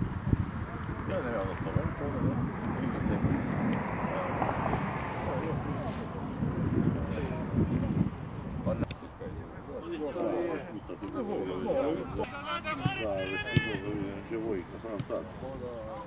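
Young men call out to each other across an outdoor pitch.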